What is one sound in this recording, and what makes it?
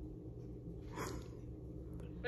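A woman speaks quietly over a video call on a phone.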